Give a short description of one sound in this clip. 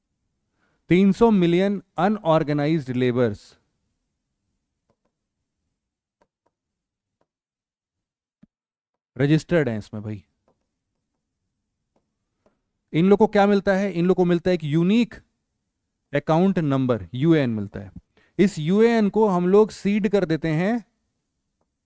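A man speaks calmly and clearly through a close headset microphone, in bursts with pauses.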